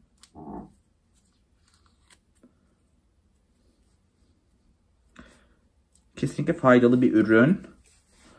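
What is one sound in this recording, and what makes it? Hands rub and brush the skin of a bare foot softly.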